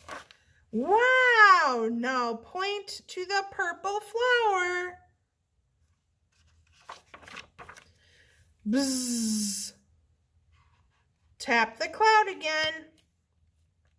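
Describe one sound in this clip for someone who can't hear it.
A young woman reads aloud expressively, close by.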